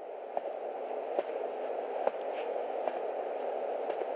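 Footsteps walk across a room.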